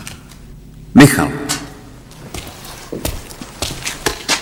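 A young man answers in a low voice nearby.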